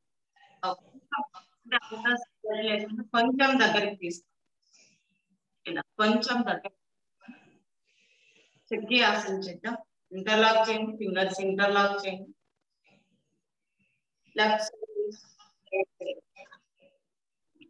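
A young woman speaks calmly, giving instructions close to a microphone.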